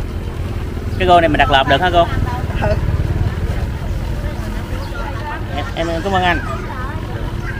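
A middle-aged woman talks nearby.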